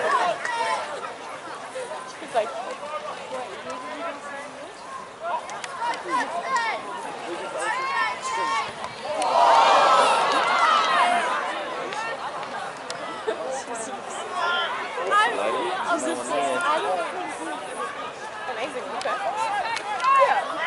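Young men shout to each other outdoors on an open field.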